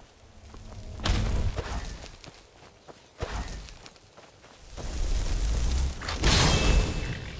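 A magic spell crackles and roars in loud bursts.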